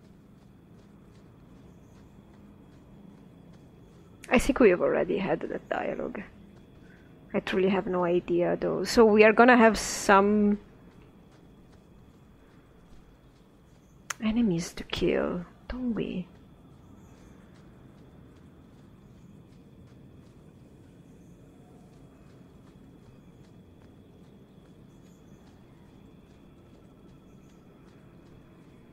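Footsteps patter quickly on sand and dirt.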